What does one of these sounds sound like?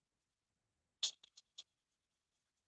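A nail file rasps against a plastic doll.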